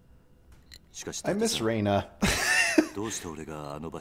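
A second man asks a question in a puzzled tone.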